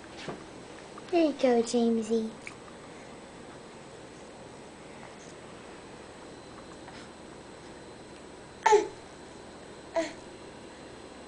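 A baby coos and babbles up close.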